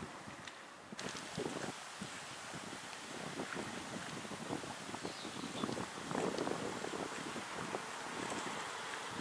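Small waves lap against a shore.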